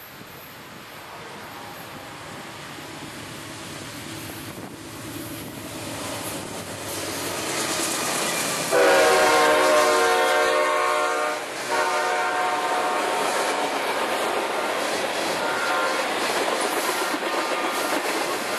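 A freight train approaches and rumbles past close by, growing louder.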